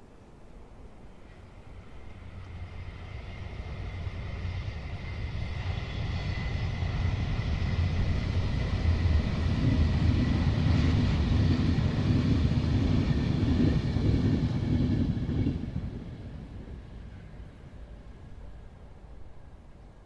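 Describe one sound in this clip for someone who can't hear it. A steam locomotive chugs past, growing louder and then fading away.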